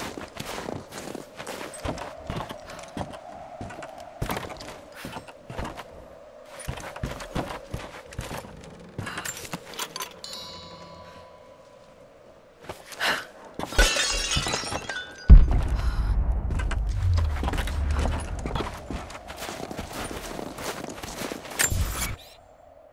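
Footsteps crunch on snow and thump on wooden boards.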